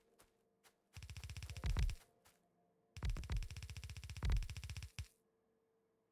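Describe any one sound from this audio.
Electric sparks crackle and buzz.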